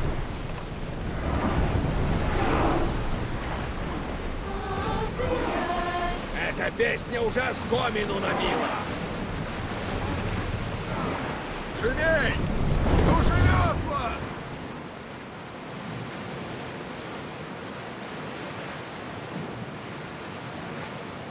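Waves splash and rush against a wooden ship's hull.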